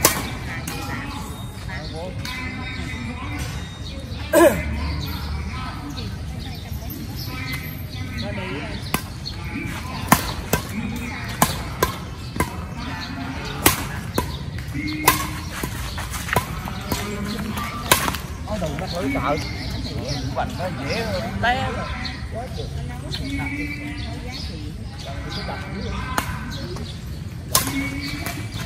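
Rackets smack a shuttlecock back and forth outdoors.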